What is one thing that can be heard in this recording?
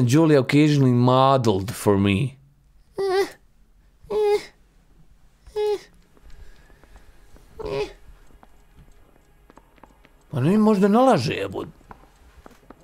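A young man talks animatedly into a close microphone, in short bursts with pauses.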